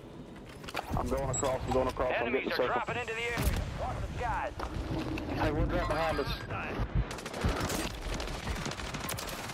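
Gunshots crack rapidly in a game.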